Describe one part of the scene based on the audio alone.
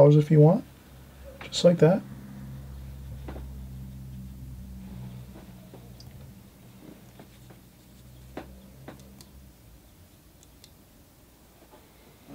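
A brush dabs and taps softly on paper.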